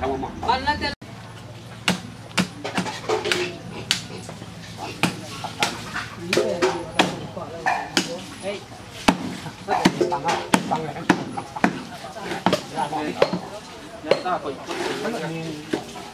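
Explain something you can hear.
Knives knock sharply on a wooden board.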